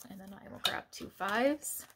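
Paper cards rustle as they are handled.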